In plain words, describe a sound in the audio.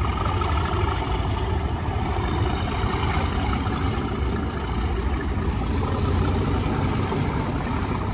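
A train rolls slowly past with a steady low rumble.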